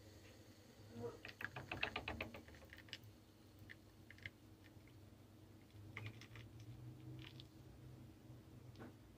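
Hot coffee pours and trickles into a small cup.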